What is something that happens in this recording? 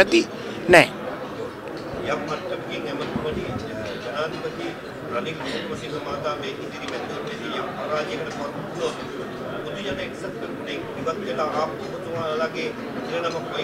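An older man speaks calmly into microphones.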